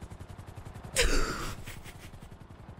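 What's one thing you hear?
A young woman laughs loudly close to a microphone.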